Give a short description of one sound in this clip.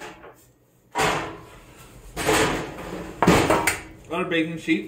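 A metal baking pan scrapes and clatters onto a stovetop.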